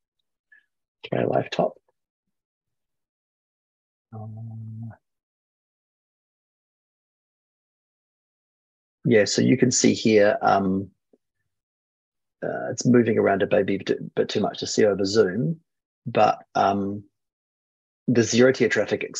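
A man speaks calmly over an online call, in short bursts.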